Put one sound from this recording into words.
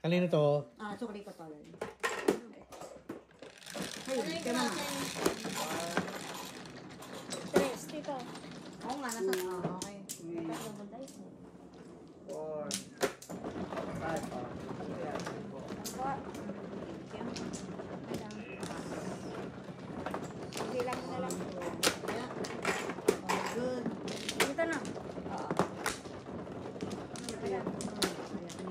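Women chat and laugh close by.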